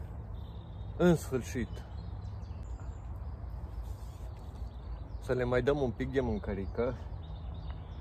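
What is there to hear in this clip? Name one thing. A middle-aged man talks calmly outdoors.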